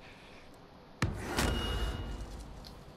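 A rifle fires a loud shot that echoes briefly.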